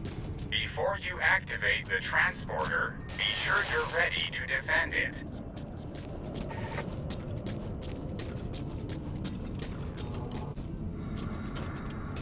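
Footsteps crunch quickly over gravel.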